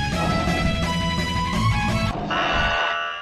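Upbeat game music plays loudly.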